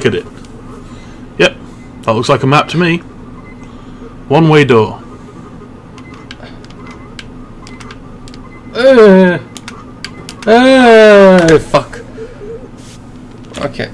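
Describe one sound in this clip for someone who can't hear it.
A video game plays short electronic beeps.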